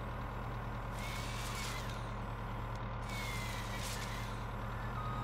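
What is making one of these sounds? A chainsaw bar whines as it cuts through a tree trunk.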